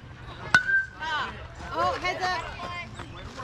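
Young players shout and cheer outdoors.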